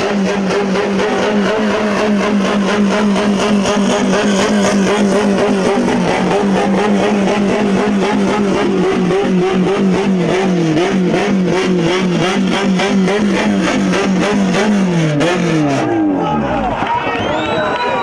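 A race car engine idles and rumbles, then winds down.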